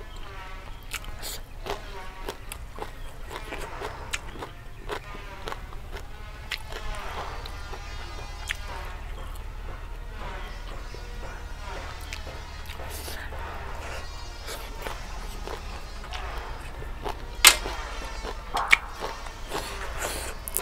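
A young woman chews crunchy food loudly close to a microphone.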